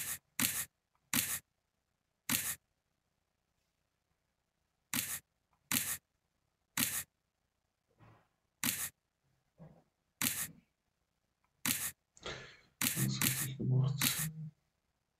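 Playing cards snap down one after another in short sharp slaps.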